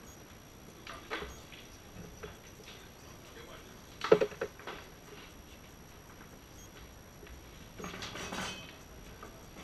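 Men talk quietly a short way off in a room.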